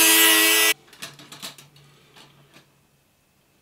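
Thin wire clicks and scrapes against metal.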